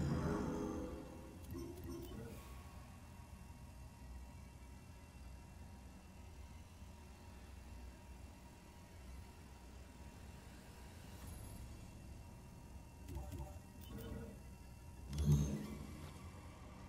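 Menu blips and clicks sound in short bursts.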